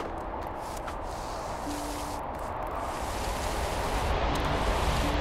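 A small ball rolls and bumps over snow.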